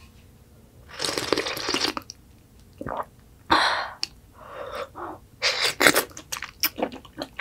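A woman slurps soup loudly from a spoon, close up.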